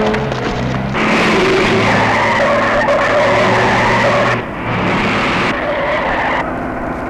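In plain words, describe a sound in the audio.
A truck engine roars as the truck drives off.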